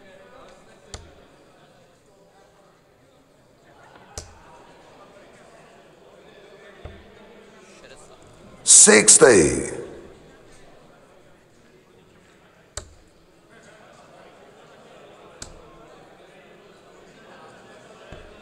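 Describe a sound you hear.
Darts thud into a dartboard one at a time.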